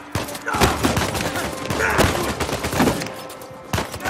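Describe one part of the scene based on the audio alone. Punches land with heavy thuds in hand-to-hand fighting.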